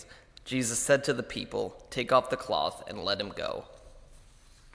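A young man reads out into a microphone in an echoing room.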